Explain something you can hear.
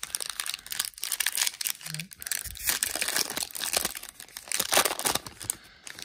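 A plastic card wrapper crinkles and tears open close by.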